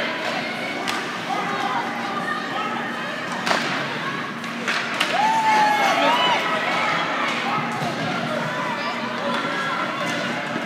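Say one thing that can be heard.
A crowd of spectators murmurs and chatters in a large echoing rink.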